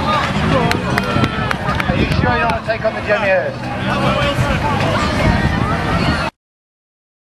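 A crowd of men and women chatter and call out outdoors.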